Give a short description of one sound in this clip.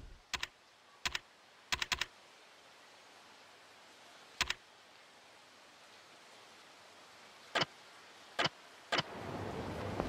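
Short electronic menu blips sound in quick bursts.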